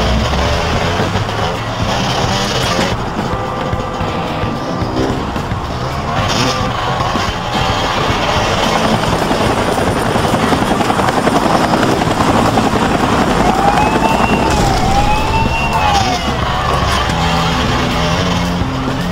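A motorbike engine revs and drones throughout.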